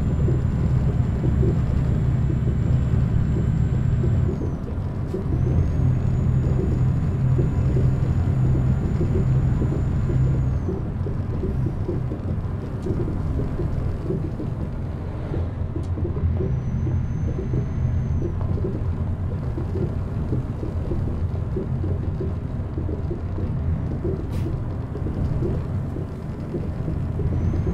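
A truck engine rumbles steadily, rising and falling as it drives.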